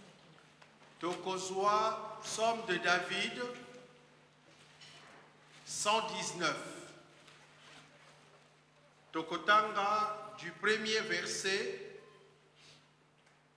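A man speaks slowly and with feeling into a microphone.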